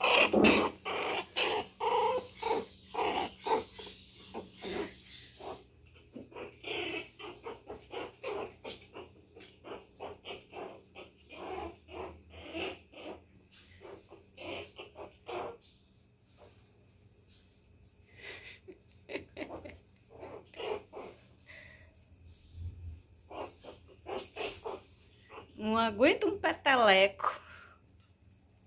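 A puppy yelps and whines.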